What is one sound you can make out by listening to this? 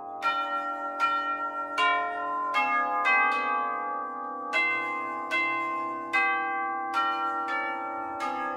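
Tubular chime bells ring out a slow melody, each note struck and left to ring.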